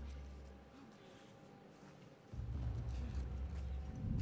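Footsteps shuffle softly on wet ground.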